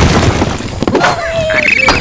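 A cartoon bird squawks.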